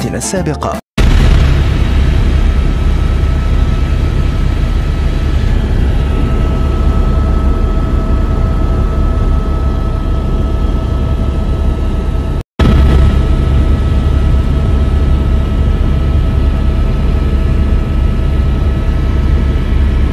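A helicopter engine and rotor drone loudly and steadily from inside the cabin.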